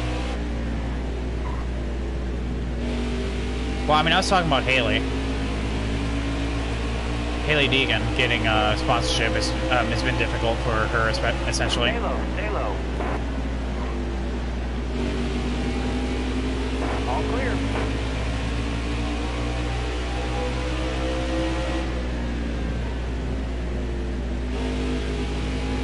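A racing engine roars steadily, rising and falling in pitch.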